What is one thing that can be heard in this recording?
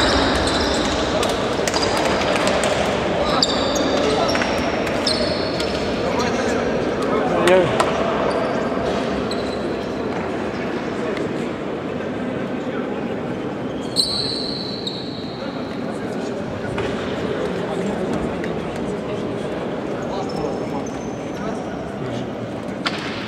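Young men chatter and call out in a large echoing hall.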